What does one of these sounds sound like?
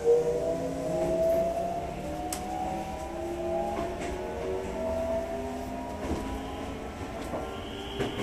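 An electric train's motor whines in shifting, gliding tones.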